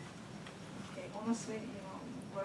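An elderly man speaks briefly nearby.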